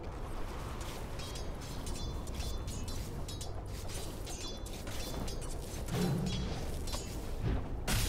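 Weapons clash and clatter in a fight.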